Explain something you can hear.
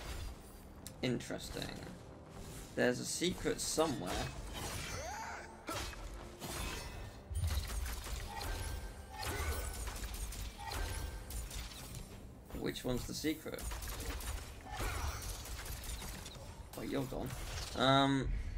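Magic blasts whoosh and crackle in a fight.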